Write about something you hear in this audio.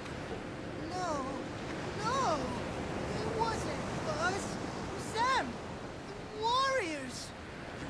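A young man pleads frantically in a shaky voice.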